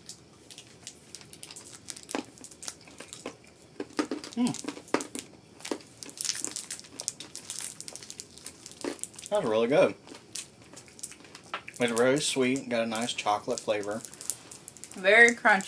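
Plastic wrappers crinkle and rustle in people's hands.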